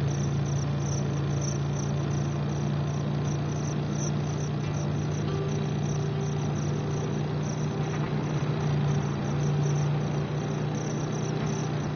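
A motorcycle engine drones steadily at high speed.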